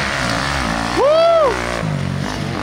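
A dirt bike roars past close by.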